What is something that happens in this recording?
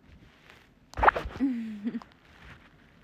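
A young woman makes a short vocal sound up close.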